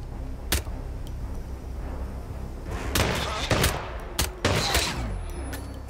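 Pistol shots crack sharply several times.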